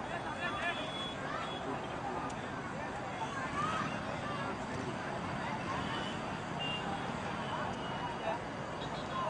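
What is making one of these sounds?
A large outdoor crowd chatters and cheers steadily.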